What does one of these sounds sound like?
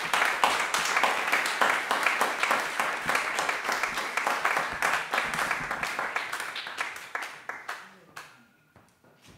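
An audience applauds, then the applause fades away.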